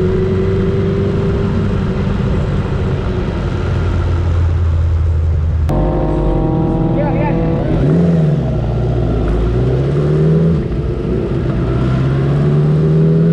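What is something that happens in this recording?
A motorcycle engine idles close by and revs up now and then.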